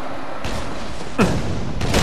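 Gunfire and energy blasts crackle from a video game.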